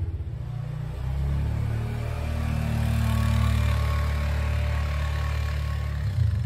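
A quad bike engine rumbles steadily nearby as it drives past outdoors.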